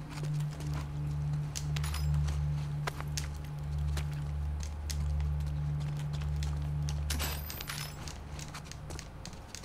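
Footsteps tread slowly across a hard, gritty floor.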